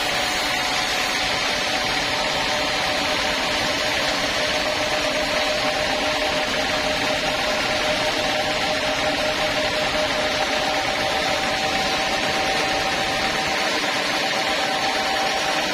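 A sawmill bandsaw whines as it cuts through a log.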